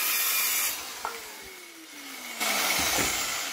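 A circular saw's blade spins down, its whine falling in pitch.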